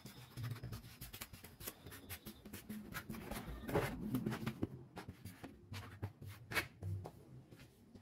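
Thin wooden sheets rattle and clack as they are handled.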